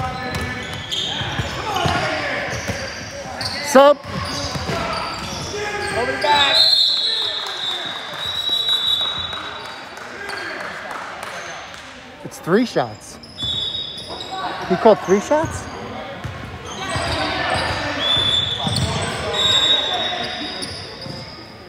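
Young girls and adults chatter and call out in a large echoing gym.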